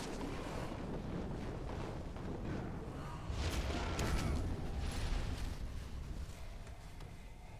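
Fiery magic blasts roar and crackle in a fight.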